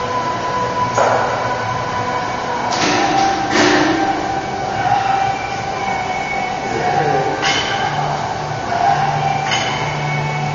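A cable weight machine clanks as its weights lift and drop.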